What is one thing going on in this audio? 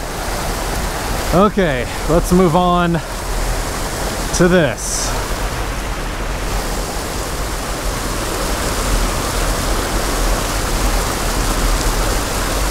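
Water rushes steadily over a small weir nearby.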